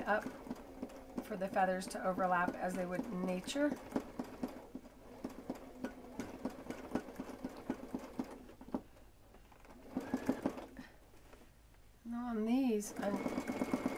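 A sewing machine stitches with a rapid, steady clatter.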